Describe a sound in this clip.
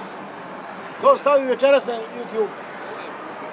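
An older man talks nearby.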